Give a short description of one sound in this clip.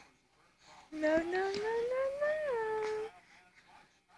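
A baby whines in a long rising cry.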